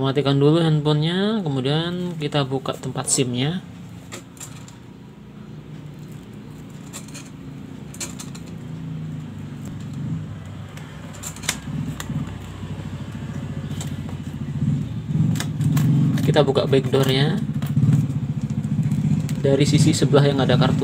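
A plastic phone case clicks and taps.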